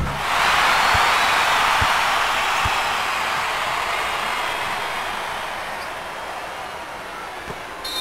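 A crowd cheers loudly, then slowly fades.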